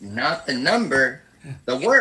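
A middle-aged man laughs over an online call.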